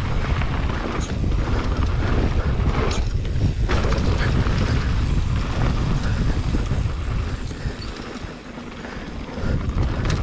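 Mountain bike tyres crunch and rattle over a dirt trail.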